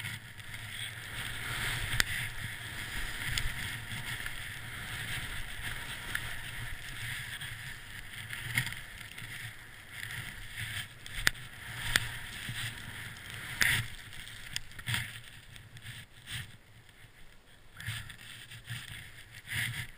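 Skis hiss and swish through deep powder snow.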